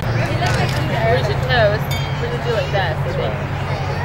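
Glasses clink together in a toast.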